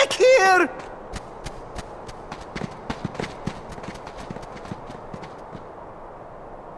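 Light footsteps patter quickly across the ground.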